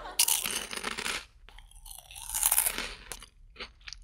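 Crunchy snacks are chewed close to a microphone.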